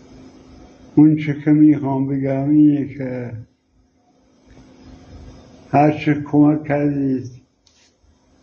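An elderly man speaks close by, slowly and weakly.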